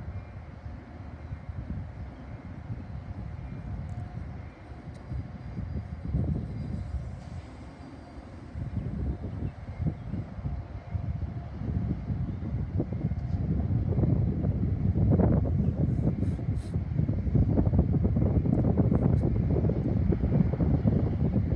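A train rumbles away along the tracks, slowly fading.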